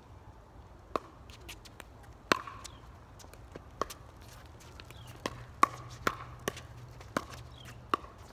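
Paddles sharply strike a plastic ball back and forth.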